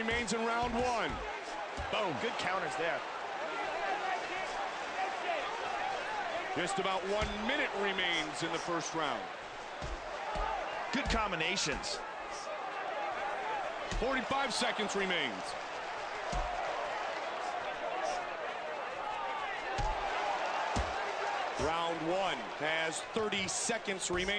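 A crowd cheers and murmurs steadily in a large arena.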